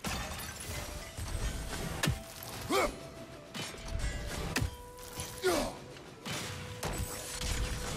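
An axe strikes a glowing orb with a sharp crackling hit.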